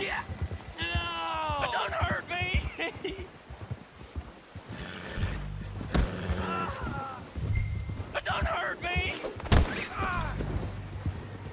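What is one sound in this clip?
A man shouts in fear, nearby.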